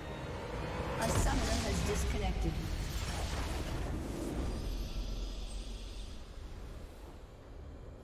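A triumphant game fanfare bursts out with a whoosh and slowly fades.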